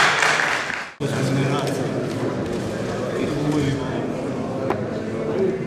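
Several men chat nearby.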